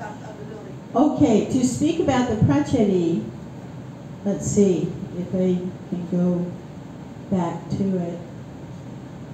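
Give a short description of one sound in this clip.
An elderly woman speaks calmly into a microphone over a loudspeaker in a large room.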